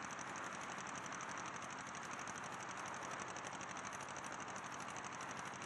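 A light propeller aircraft's engine drones in flight, with a rapidly pulsing propeller beat.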